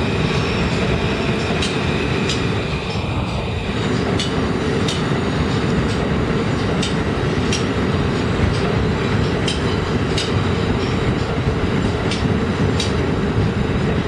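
A subway train rumbles and clatters loudly along elevated tracks.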